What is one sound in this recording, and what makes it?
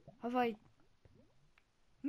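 Lava bubbles and pops nearby.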